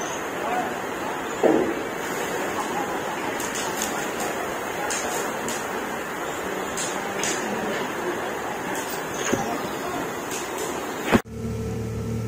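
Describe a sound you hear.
A fire crackles and roars outdoors.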